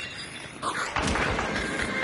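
A heavy blow strikes with a dull thud.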